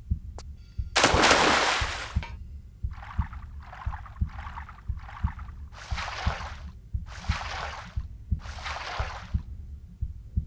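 Water splashes in bursts as a swimmer strokes through it.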